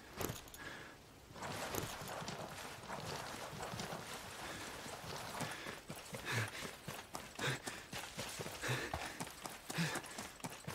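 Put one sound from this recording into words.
Boots crunch on rocky ground.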